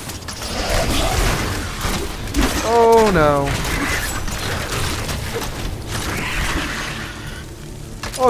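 Fiery blasts burst and roar in quick succession.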